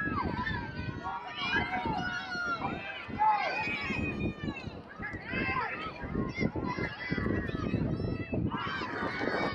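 Young women shout and call out to each other on an open field.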